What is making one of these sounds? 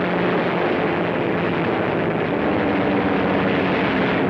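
A propeller plane's engine roars steadily.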